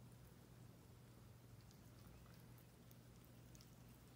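A cat chews food from a plate with soft wet smacking sounds.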